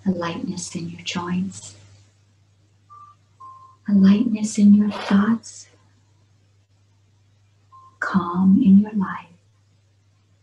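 A middle-aged woman speaks calmly, close up, over an online call.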